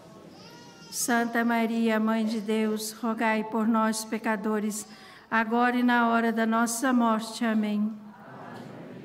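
An elderly man chants in a steady sung tone through a microphone and loudspeakers.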